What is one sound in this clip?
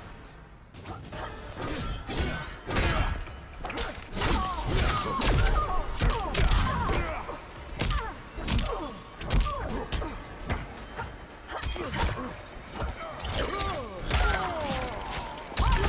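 Punches and kicks land with sharp, heavy thuds in quick bursts.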